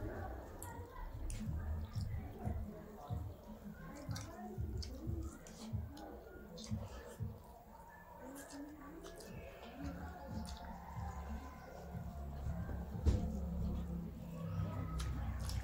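Two women chew and smack their lips loudly, close up.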